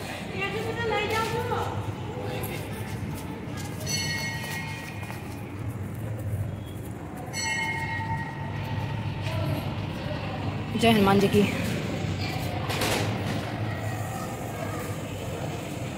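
Footsteps climb and walk on stone steps.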